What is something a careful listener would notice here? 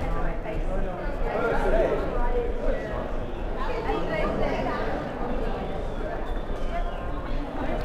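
Young people's voices call out, echoing around a large hall.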